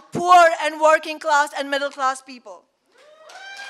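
A woman speaks firmly into a microphone over loudspeakers in a large room.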